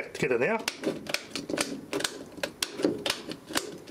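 A plastic switch plate knocks and clicks in a hand.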